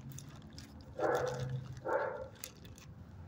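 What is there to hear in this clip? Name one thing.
A dog sniffs at close range.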